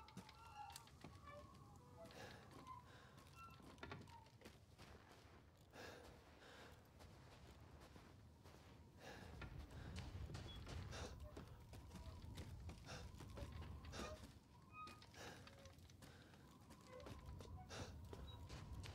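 Footsteps crunch over snow and creaking debris.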